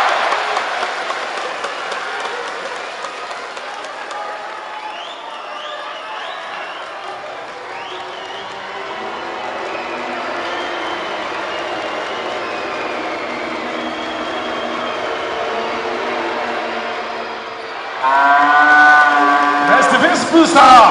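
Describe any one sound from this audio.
A large crowd cheers and chants, echoing through a big indoor hall.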